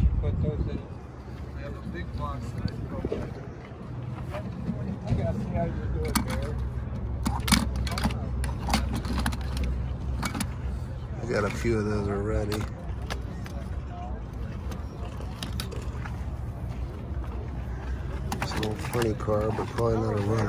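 Small metal toy cars click and clatter against a plastic case.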